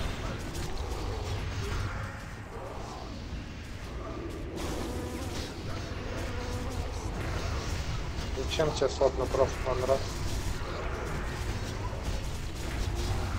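Magic spells whoosh and crackle in a fierce fight.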